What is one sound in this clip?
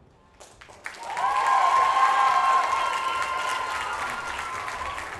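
An audience cheers and whistles loudly in a large hall.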